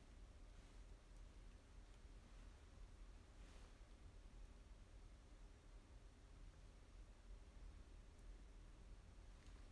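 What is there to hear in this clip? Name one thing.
Fingers brush through hair close to a microphone.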